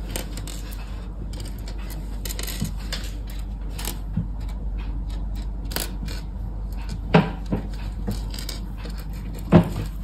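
Small plastic bricks click and rattle as a hand sorts through them on a hard surface.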